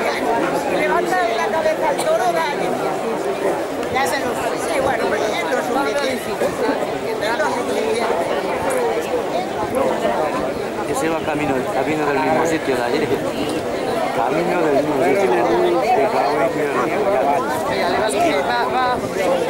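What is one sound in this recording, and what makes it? A crowd of men shout and call out nearby outdoors.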